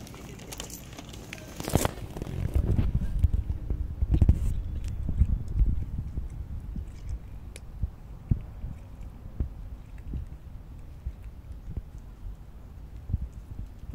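A cat crunches dry food close by.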